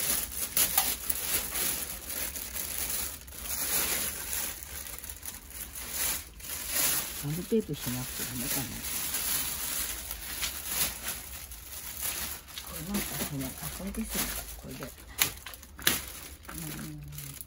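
A metal wire rack rattles against plastic.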